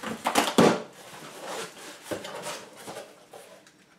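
Cardboard flaps rustle as a box is opened.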